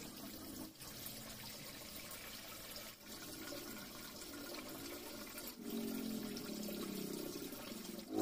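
Water pours from a hose and splashes into a tank.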